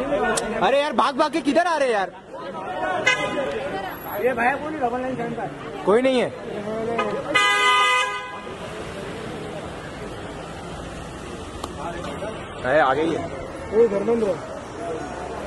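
Several men shout and call out excitedly nearby.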